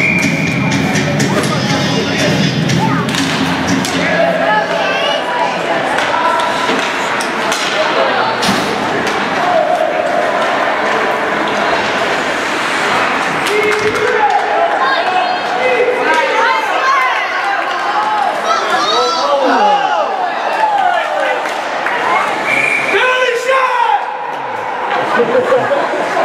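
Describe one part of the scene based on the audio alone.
A crowd of spectators cheers and shouts in an echoing rink.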